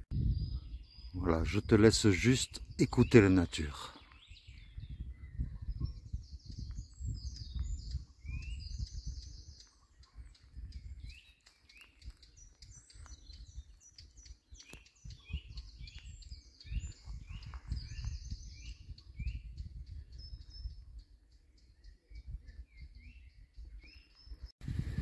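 Footsteps crunch over dry leaves.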